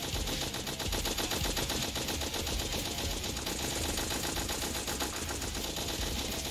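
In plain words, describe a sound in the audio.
A minigun fires rapidly and without pause.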